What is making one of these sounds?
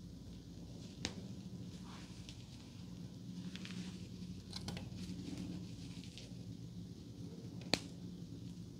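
A hair clip clicks shut.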